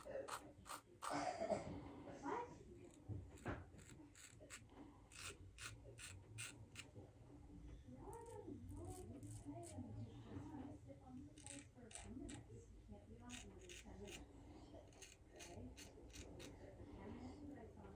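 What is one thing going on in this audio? A razor scrapes softly across stubble in short strokes.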